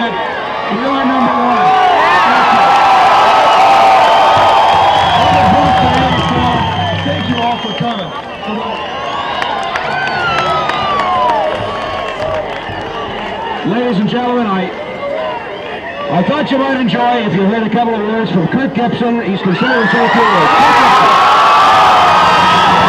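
A large crowd cheers and shouts.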